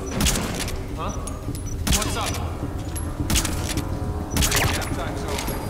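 A silenced pistol fires several muffled shots.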